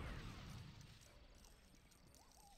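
A blast goes off and fades.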